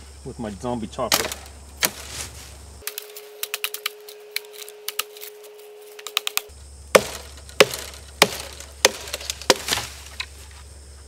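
A machete chops and snaps through branches.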